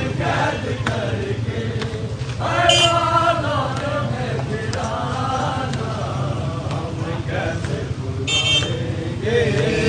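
Men beat their chests in a steady rhythm.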